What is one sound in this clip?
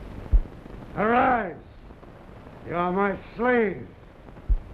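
A man speaks slowly in a deep, dramatic voice.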